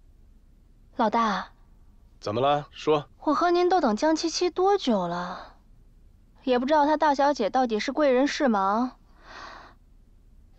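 A young woman speaks coolly and slowly nearby.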